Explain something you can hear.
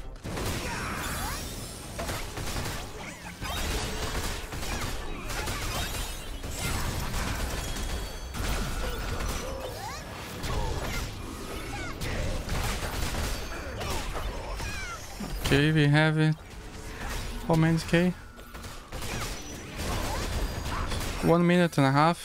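Blows and impacts thud rapidly in a fight.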